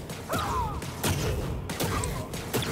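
An energy blast bursts with a loud whoosh.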